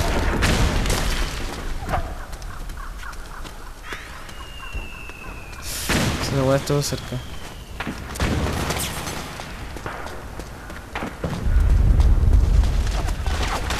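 Footsteps patter on hard ground as a soldier runs.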